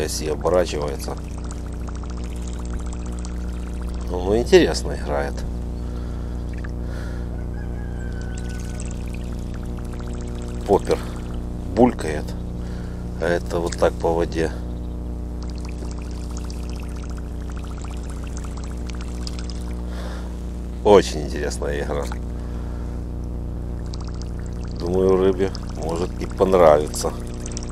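A fishing lure splashes across the water surface.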